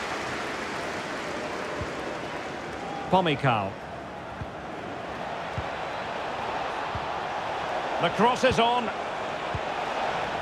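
A stadium crowd roars and murmurs steadily throughout.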